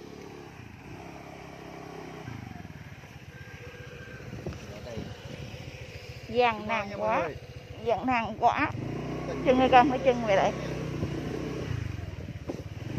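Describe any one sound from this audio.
A motorbike engine putters and revs steadily close by.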